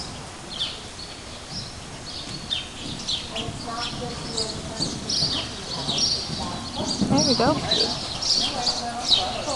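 A horse's hooves thud on soft ground in a large echoing hall.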